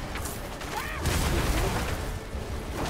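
Fiery blasts and crackling explosions burst in a game.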